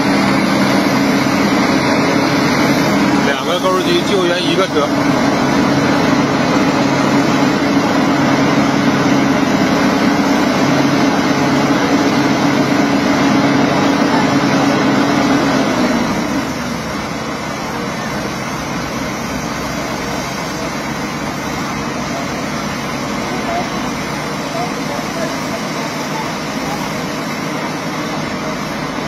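An excavator's diesel engine roars loudly, then drops to a lower rumble.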